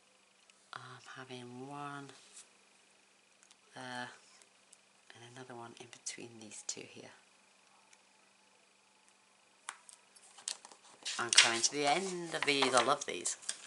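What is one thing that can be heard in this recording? Paper rustles and taps lightly as it is handled.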